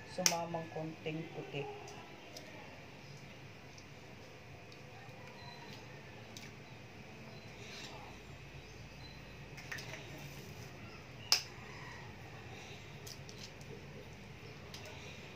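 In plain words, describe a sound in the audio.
Eggshells crinkle and rustle as hands pull them apart.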